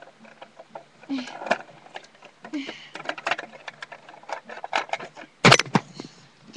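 Plastic toy parts click and rattle as a hand handles them.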